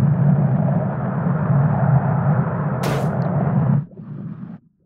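A small ball rolls with a steady low rumble along a hard track.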